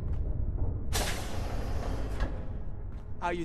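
A heavy metal door slides open with a loud hiss.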